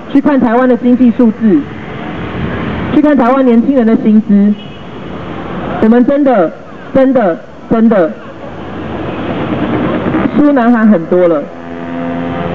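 A man speaks loudly and forcefully into a microphone through a loudspeaker, outdoors, in short bursts.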